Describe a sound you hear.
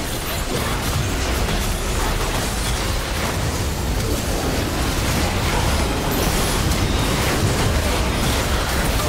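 Game spell effects crackle and blast during a fight.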